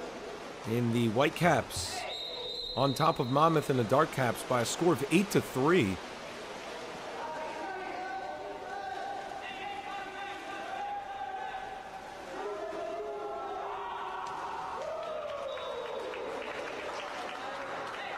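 Water splashes as swimmers thrash and kick in a pool.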